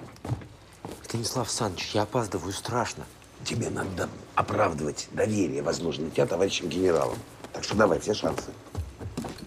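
A young man and an older man argue loudly.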